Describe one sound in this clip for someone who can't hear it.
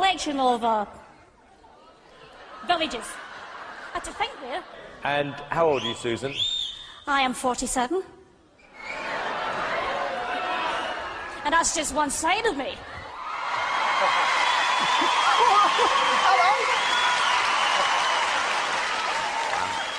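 A middle-aged woman sings loudly into a microphone.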